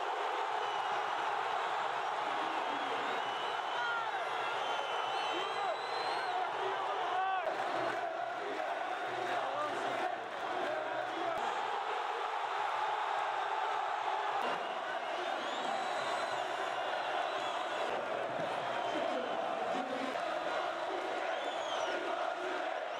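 A large crowd cheers and roars in an open stadium.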